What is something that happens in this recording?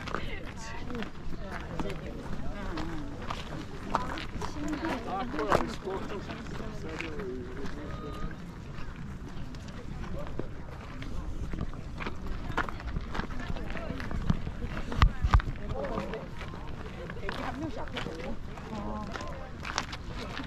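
Many people chat at a distance outdoors.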